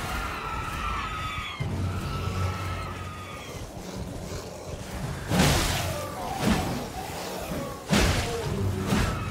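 A horse's hooves thud steadily as it gallops.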